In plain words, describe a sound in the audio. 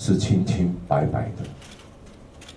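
A man speaks into a microphone close by, calmly.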